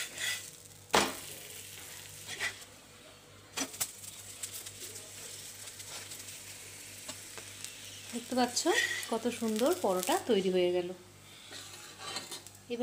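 A metal spatula scrapes and taps against a hot pan.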